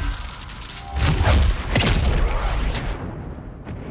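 A crackling burst of energy strikes with a deep boom.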